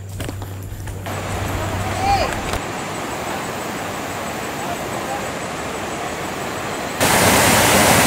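River water flows and ripples over rocks.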